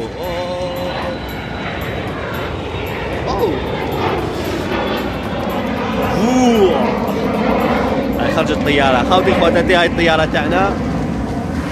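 A young man talks close to the microphone with animation.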